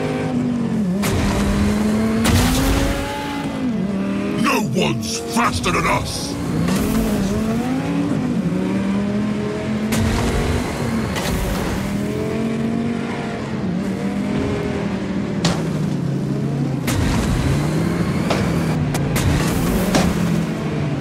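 Metal parts crash and bang together in sharp impacts.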